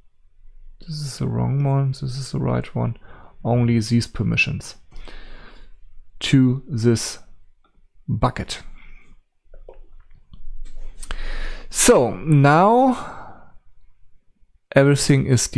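An elderly man talks calmly into a nearby microphone.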